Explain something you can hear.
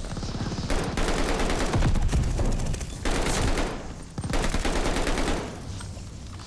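Rapid machine gun fire rattles loudly.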